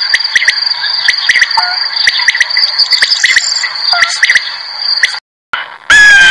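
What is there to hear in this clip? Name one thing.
A quail calls in quick chirps.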